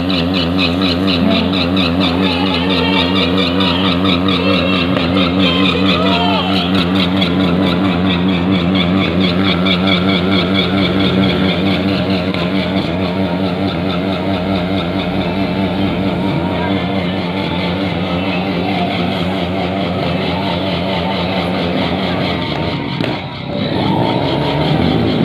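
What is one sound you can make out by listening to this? A motorcycle engine idles and revs loudly nearby.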